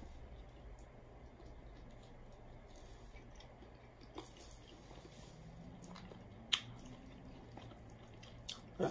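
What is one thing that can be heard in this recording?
A woman chews food close to a microphone, with wet smacking and crunching.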